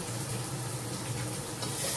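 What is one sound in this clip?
A wooden spoon stirs and scrapes inside a metal pot.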